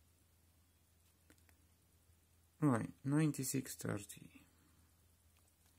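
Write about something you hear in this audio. Phone keys click softly as buttons are pressed.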